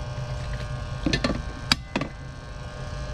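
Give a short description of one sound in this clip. Metal probes click and tap against a fitting.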